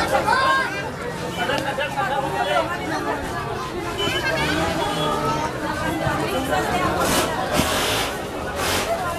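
A dense crowd of men and women talks and calls out loudly all around, close by.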